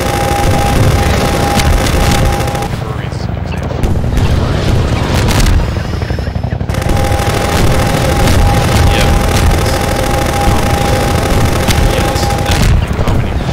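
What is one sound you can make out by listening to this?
Helicopter rotors thrum loudly overhead.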